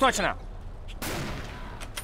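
A rifle fires a single shot.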